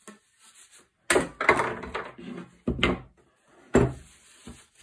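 A heavy metal part knocks onto a wooden bench.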